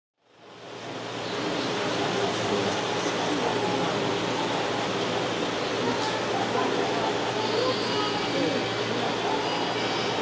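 A crowd of adults chatters in a large echoing hall.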